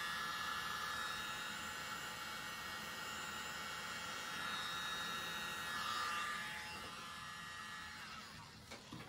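A small handheld electric blower whirs.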